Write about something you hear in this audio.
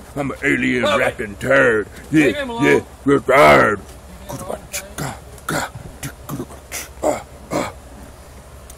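A young man shouts and sings loudly and excitedly, close up.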